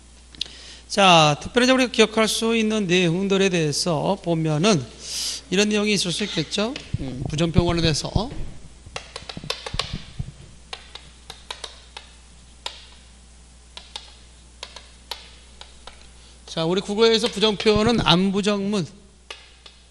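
A man speaks through a handheld microphone in a calm, lecturing voice, pausing now and then.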